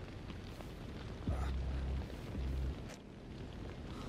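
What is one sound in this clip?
A young man groans and gasps in pain close by.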